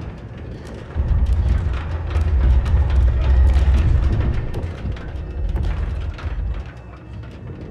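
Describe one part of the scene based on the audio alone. A low, heavy rumble swells and then fades.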